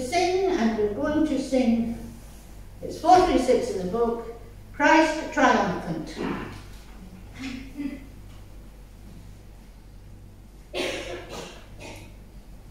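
An elderly man speaks calmly through a microphone in a large echoing room.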